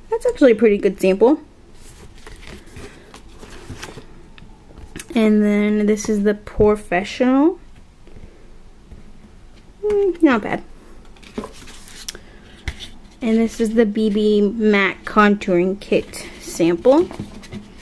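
Card packaging rustles and taps as hands handle it.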